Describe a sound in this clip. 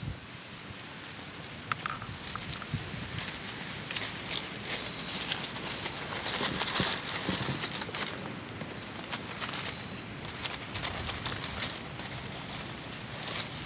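An armadillo rustles through dry leaves.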